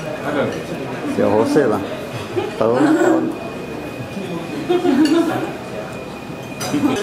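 A middle-aged man laughs nearby.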